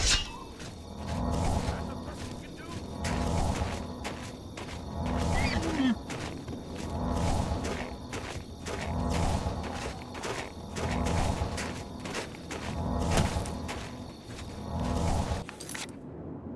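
A magic spell hums and crackles in repeated swelling pulses.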